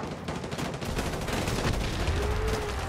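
A large explosion booms and rumbles nearby.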